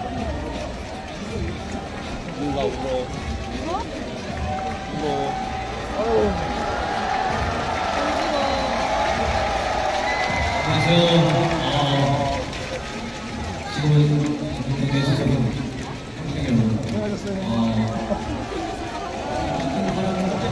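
A large crowd murmurs and chants across an open stadium.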